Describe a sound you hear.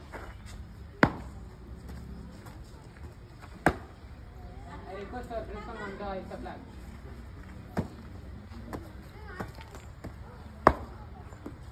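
A boy stamps his feet sharply as he marches.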